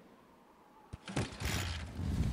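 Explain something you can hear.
A motorcycle engine starts up.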